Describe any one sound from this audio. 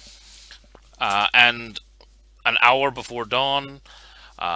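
A man talks with animation over an online call.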